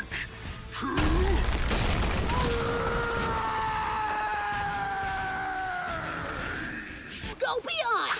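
A giant man roars loudly.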